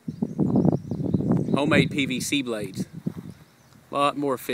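Wind gusts outdoors.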